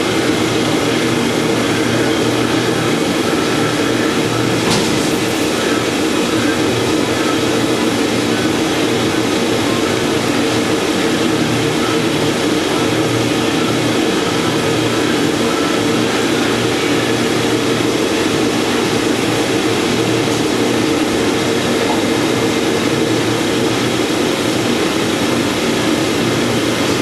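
A stream of water pours steadily into a basin of water, splashing and churning.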